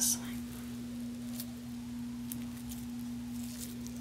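Soft dough tears apart with a quiet crackle.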